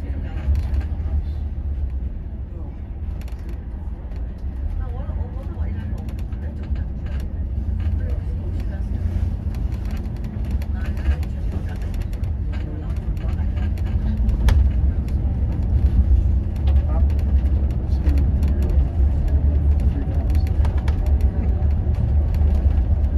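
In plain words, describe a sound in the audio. Tyres hum on the road.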